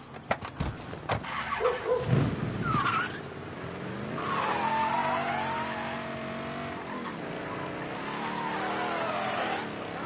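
A car engine starts and runs.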